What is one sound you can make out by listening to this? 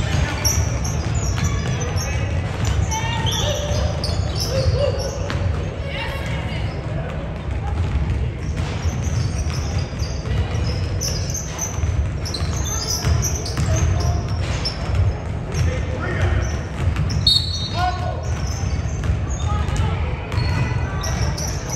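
Sneakers squeak sharply on a hard floor in an echoing gym.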